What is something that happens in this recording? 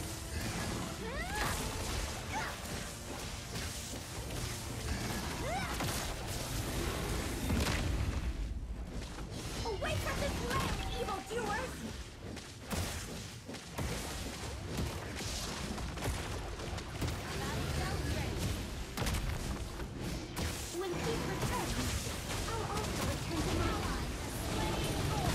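Video game combat effects of spells and weapon strikes crackle and clash in quick bursts.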